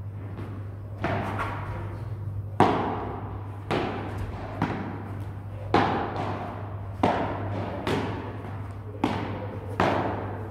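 Padel rackets strike a ball with sharp pops that echo around a large indoor hall.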